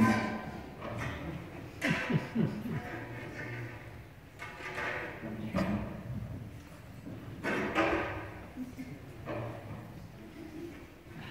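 A choir of young children sings together in a large, echoing hall.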